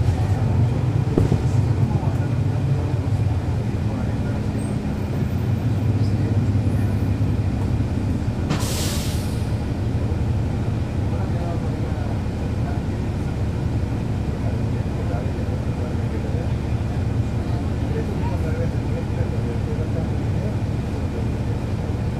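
A bus engine idles with a steady low rumble close by.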